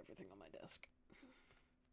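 A young woman speaks briefly and calmly into a close microphone.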